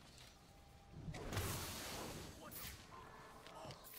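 A rush of smoke whooshes loudly.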